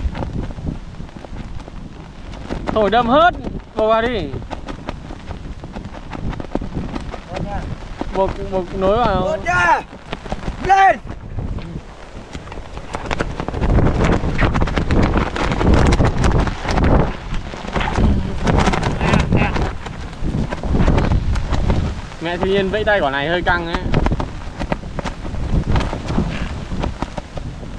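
Strong wind blows and buffets the microphone outdoors.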